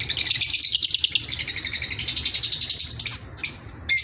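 Small finches chirp rapidly and busily close by.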